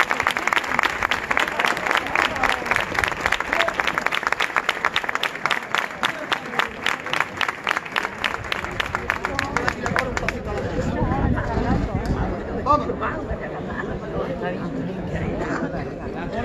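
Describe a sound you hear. A crowd of men murmurs nearby.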